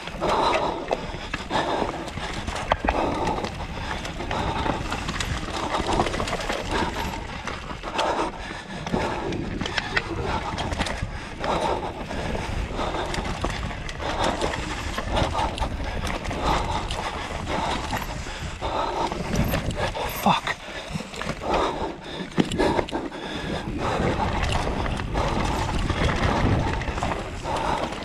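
A bicycle rattles and clunks over bumps.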